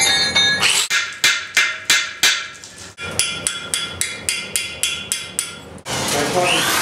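A hammer strikes a chisel into stone in sharp, quick blows.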